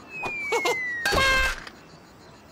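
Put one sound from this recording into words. A heavy metal ball thuds onto the ground.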